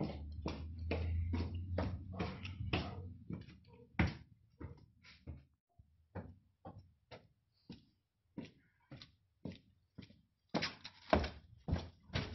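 Footsteps thud steadily on stone stairs and floor.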